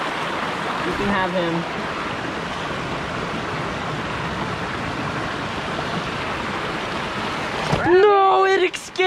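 A young woman speaks excitedly close by.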